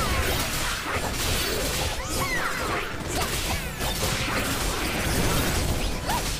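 Game sword slashes and magic blasts crash again and again in a fast fight.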